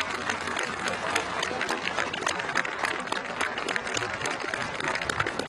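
A large crowd claps and cheers outdoors.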